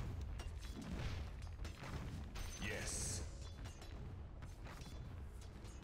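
Game weapons strike with short impacts.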